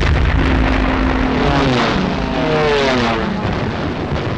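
A diving plane's engine whines as it falls in pitch.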